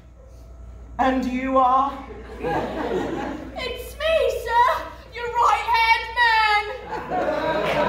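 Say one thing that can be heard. Actors sing loudly on a stage, heard from the audience.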